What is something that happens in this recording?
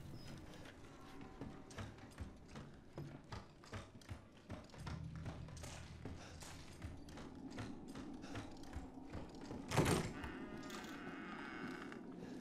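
Footsteps thud steadily on wooden floorboards.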